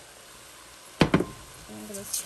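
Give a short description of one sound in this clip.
A wooden spoon knocks against a metal pot.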